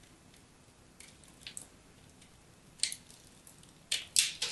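A knife scrapes and crumbles a chalky block, with crisp crunching bursts.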